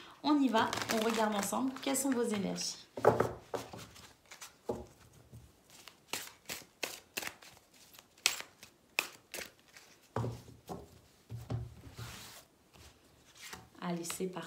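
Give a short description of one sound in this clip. Playing cards are shuffled by hand, with quick flicking and rustling.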